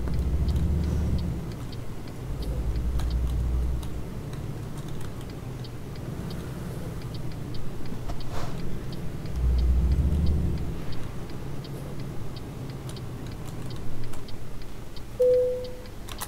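A truck engine rumbles steadily, growing louder as it speeds up.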